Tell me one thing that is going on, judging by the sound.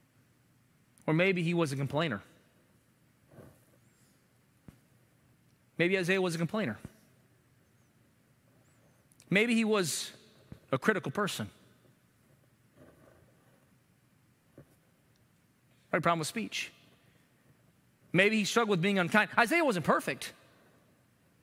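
A man speaks with emphasis through a microphone in short bursts, with long pauses.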